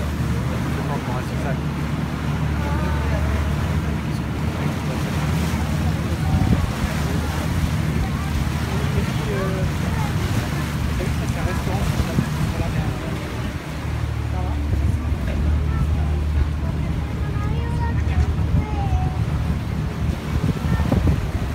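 People chatter nearby on a boat.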